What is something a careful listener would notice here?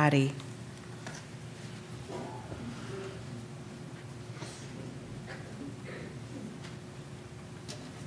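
Footsteps tap softly across a hard floor.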